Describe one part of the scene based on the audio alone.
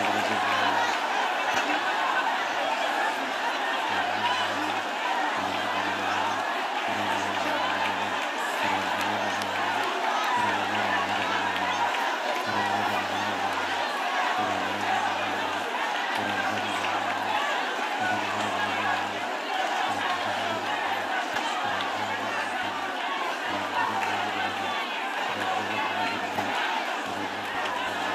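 A crowd murmurs and prays aloud outdoors.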